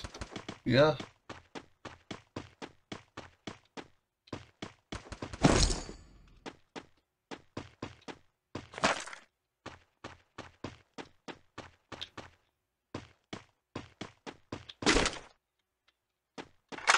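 Footsteps thud quickly and evenly on a wooden floor.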